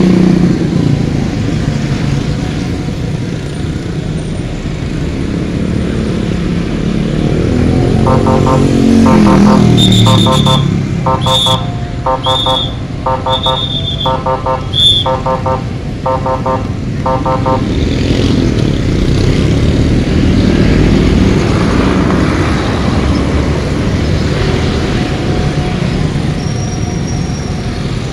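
Motorcycle engines hum and buzz steadily in passing traffic.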